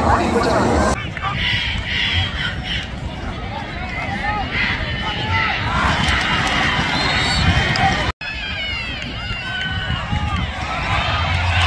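A crowd cheers outdoors in the distance.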